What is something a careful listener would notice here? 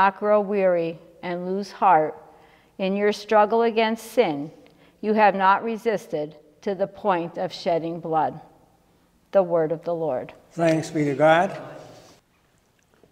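A woman reads aloud calmly into a microphone in an echoing room.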